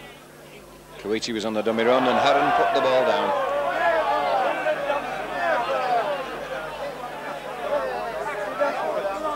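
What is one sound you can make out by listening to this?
A large outdoor crowd cheers and roars loudly.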